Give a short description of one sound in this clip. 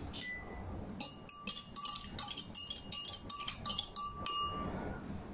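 A metal spoon stirs and clinks against a glass of water.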